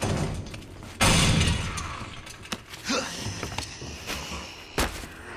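A body scrambles through a broken window frame.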